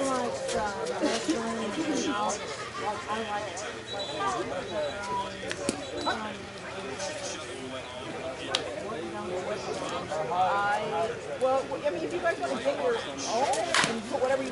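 Several men talk and call out across an open outdoor field.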